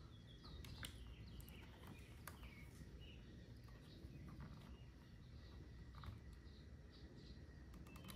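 Wires rustle and clack as hands handle them.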